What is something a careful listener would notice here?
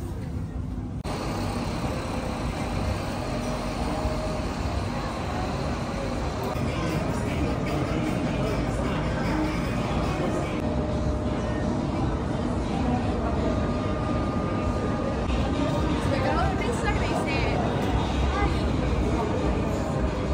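A crowd of people chats in a busy outdoor street.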